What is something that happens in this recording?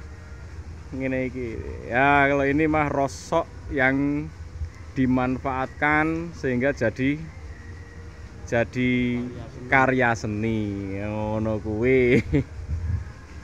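A man speaks close by with animation.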